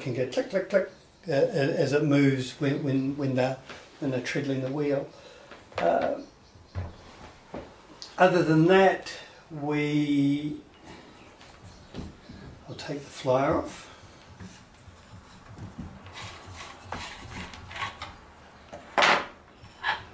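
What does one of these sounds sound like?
Wooden parts knock and click as they are handled.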